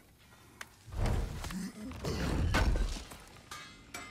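A heavy chest creaks open with a rumble.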